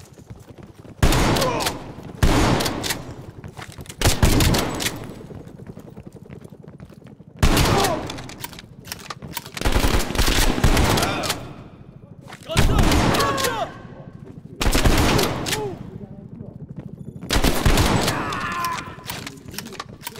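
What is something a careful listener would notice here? A shotgun fires loud blasts that echo through a wooden building.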